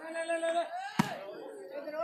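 A hand slaps a volleyball hard.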